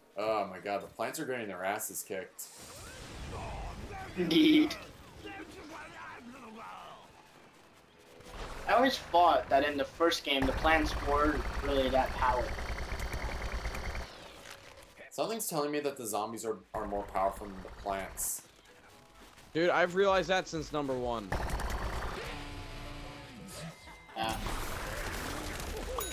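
A toy-like blaster fires rapid popping shots.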